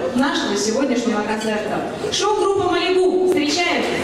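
A crowd of men and women chatter in a large room.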